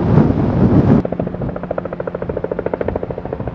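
A helicopter's rotor thumps overhead.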